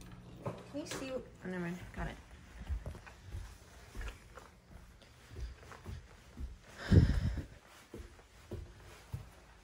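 Footsteps thud softly on carpeted stairs and a floor.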